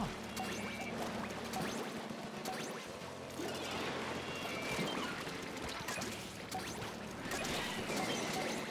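Game weapons splat and burst with paint.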